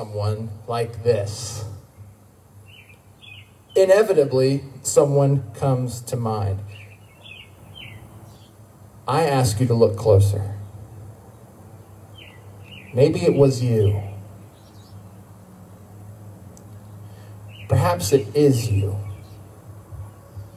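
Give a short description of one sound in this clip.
A man speaks with animation into a microphone through loudspeakers outdoors, in bursts with pauses.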